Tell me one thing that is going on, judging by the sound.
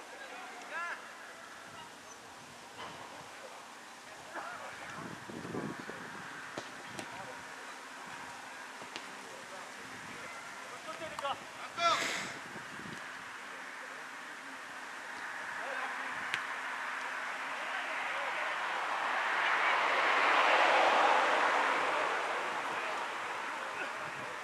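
Young footballers shout to each other across an outdoor pitch.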